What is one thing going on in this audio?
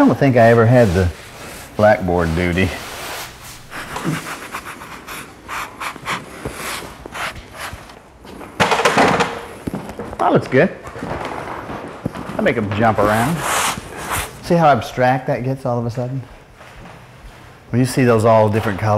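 Chalk scratches on a wall.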